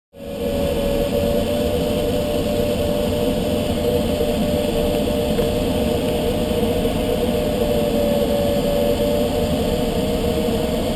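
Air rushes steadily over a glider canopy in flight.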